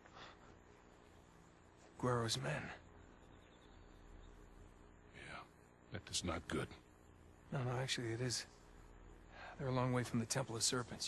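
A young man answers quietly, close by.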